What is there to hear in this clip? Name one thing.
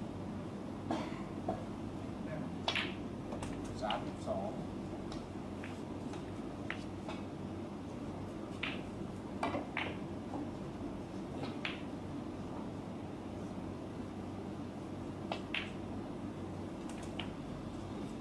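Snooker balls click sharply against each other.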